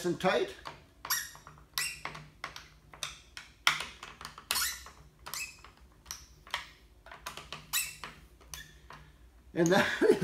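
A screwdriver clicks and scrapes against a plastic housing.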